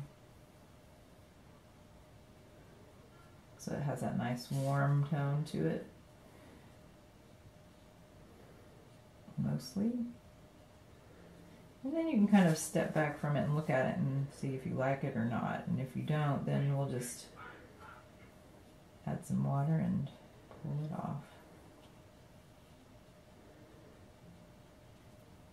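A paintbrush strokes softly across paper.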